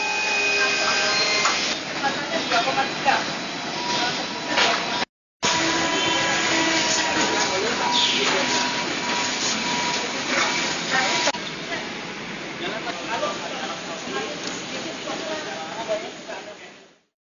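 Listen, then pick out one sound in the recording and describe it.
Machines hum and clatter steadily in a large echoing hall.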